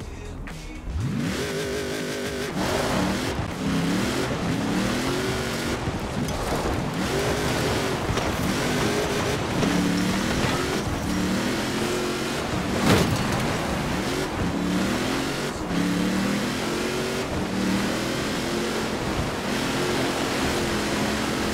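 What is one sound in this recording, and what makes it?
A car engine roars, revving up and dropping pitch again and again as it shifts gears.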